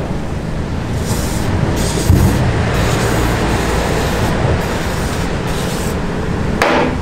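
An aerosol can sprays in short hisses.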